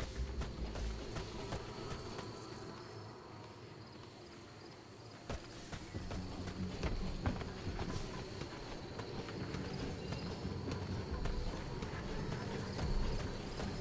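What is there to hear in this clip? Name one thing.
Footsteps move softly over dirt and gravel.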